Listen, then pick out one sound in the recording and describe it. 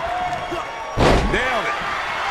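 A heavy body slams onto a wrestling ring mat with a loud thud.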